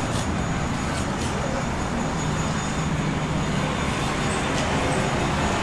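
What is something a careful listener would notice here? A cleaver chops on a wooden board.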